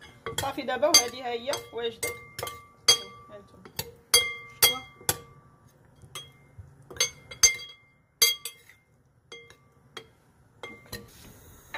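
Metal spoons clink and scrape against a glass bowl.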